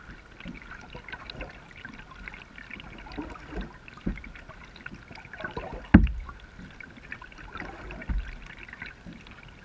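A kayak paddle dips and drips in calm water.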